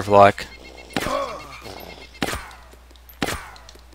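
Gunshots crack and echo.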